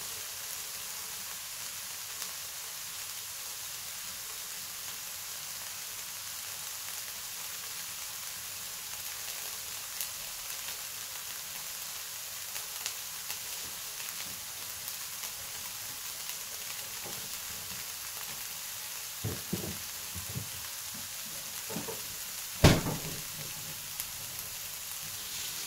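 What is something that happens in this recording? Chopped onions sizzle and crackle steadily in a hot frying pan.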